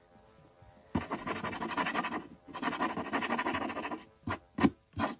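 A pencil scratches across paper as it writes.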